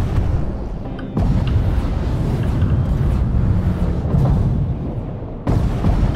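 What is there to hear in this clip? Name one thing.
A deep underwater rumble drones steadily.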